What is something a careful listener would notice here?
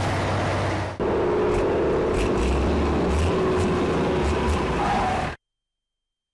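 A truck engine rumbles as the truck drives past.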